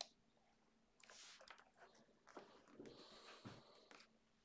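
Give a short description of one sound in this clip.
Fingers tap on a computer keyboard.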